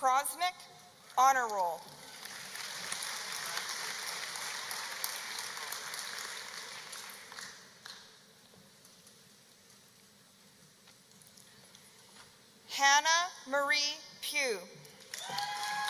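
A man reads out names through a microphone over loudspeakers in a large echoing hall.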